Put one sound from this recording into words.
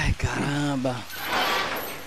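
Metal chains rattle against a rolling shutter.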